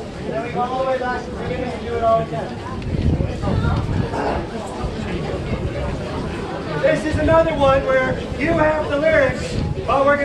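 A brass band plays a festive tune outdoors.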